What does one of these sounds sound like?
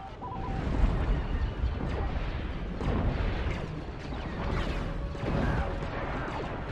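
Blaster fire zaps and crackles rapidly.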